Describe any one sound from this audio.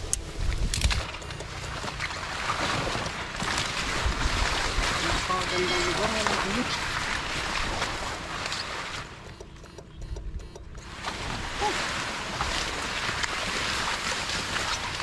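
Tall grass and leaves rustle and swish as a man wades through them.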